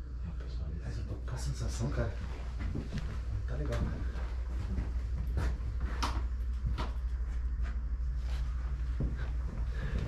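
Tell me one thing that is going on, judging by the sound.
Footsteps thud and creak on wooden floorboards.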